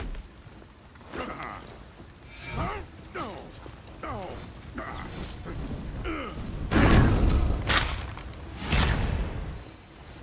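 Armoured warriors grunt and shout as they fight.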